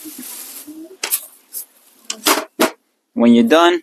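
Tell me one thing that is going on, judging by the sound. A plastic lid clicks onto a pot.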